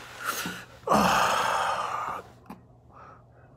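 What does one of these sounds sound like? A man blows out a long breath.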